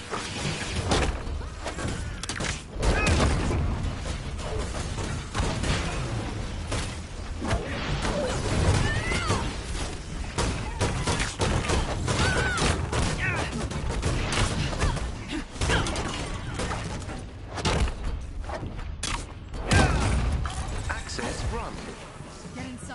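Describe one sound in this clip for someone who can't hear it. Punches, blasts and explosions crash loudly and rapidly.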